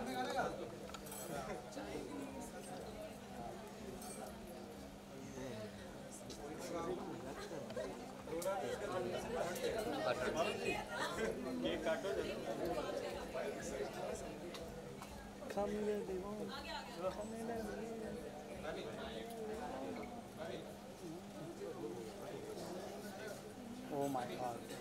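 Several women and men chat close by in a lively crowd.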